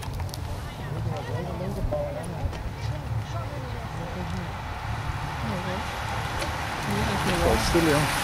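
Men and women nearby talk and call out.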